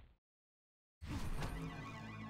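A fire spell bursts with a whoosh.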